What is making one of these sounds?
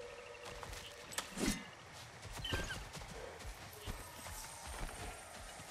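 Heavy footsteps thud and crunch on leafy ground.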